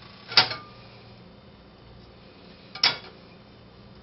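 A frying pan knocks against a stovetop.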